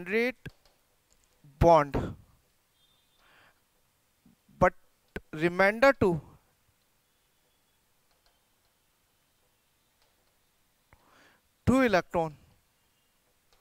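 A man speaks in short bursts through a close microphone.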